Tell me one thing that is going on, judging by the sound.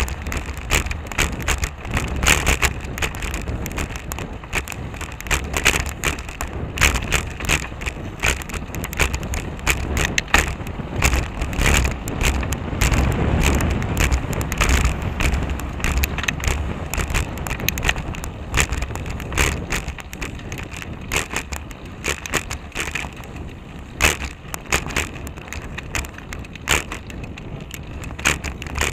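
A bicycle rattles and clatters over a bumpy road.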